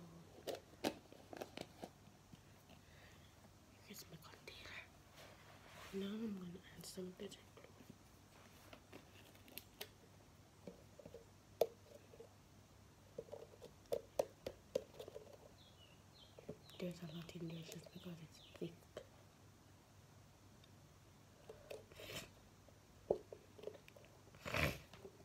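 A plastic bottle clicks and rattles in a girl's hands.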